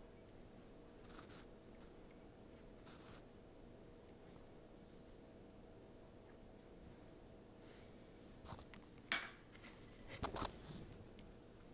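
Utensils clink lightly against a plate.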